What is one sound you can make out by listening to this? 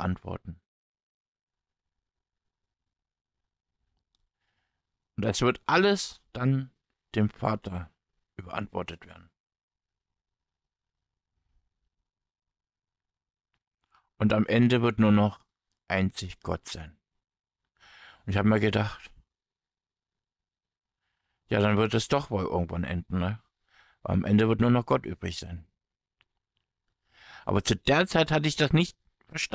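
A man speaks calmly in short phrases with long pauses, close to a microphone.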